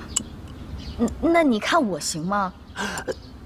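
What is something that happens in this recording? A young woman asks a question in a surprised voice.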